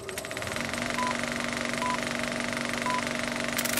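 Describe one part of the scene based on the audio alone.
Short electronic beeps mark a film countdown, one each second.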